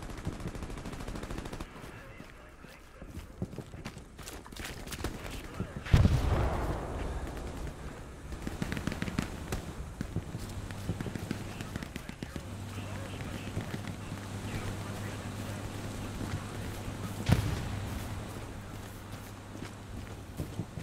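Footsteps rustle through grass and dirt.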